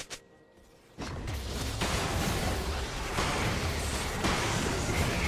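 Magic effects whoosh and crackle in a fast fight.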